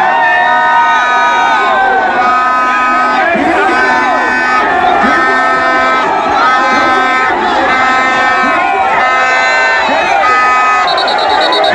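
A crowd chants together in a repeating rhythm.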